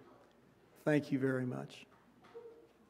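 A man speaks briefly through a microphone in a large echoing hall.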